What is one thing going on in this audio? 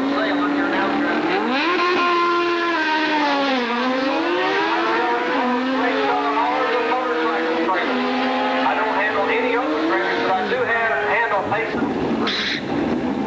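A motorcycle engine roars and changes pitch as the bike races down the track.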